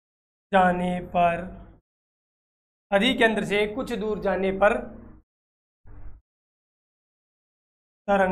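A young man speaks clearly into a close microphone.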